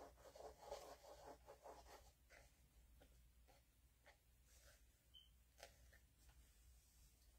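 A hand rubs and presses on paper with a soft scraping rustle.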